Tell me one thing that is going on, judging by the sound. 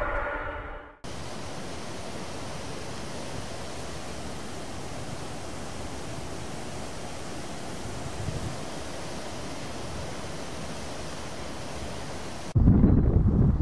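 A motor yacht speeds across water.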